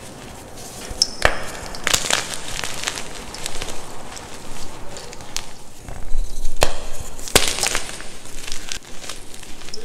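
Hands crumble and squeeze chalk, which cracks and crunches.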